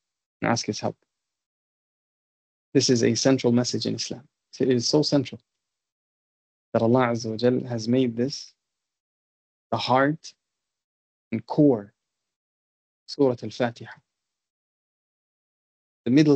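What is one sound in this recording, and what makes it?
A man speaks calmly in short phrases, heard through an online call.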